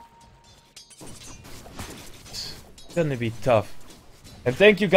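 Weapons clash and spells crackle in a fight.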